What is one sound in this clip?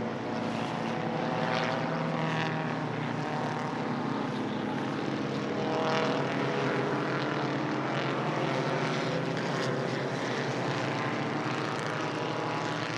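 Old racing car engines roar and buzz as they speed past one after another.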